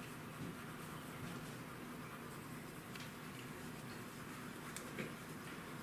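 A pencil scratches and scrapes across paper.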